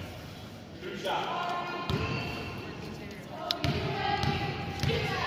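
People call out and cheer from the stands.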